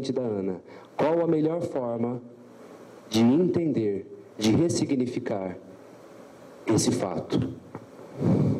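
A young man speaks into a microphone in a calm, animated way.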